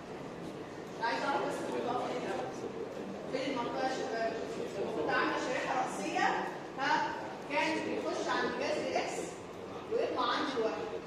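A woman lectures with animation.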